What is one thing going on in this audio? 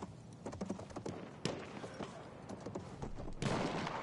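A horse gallops past with pounding hooves.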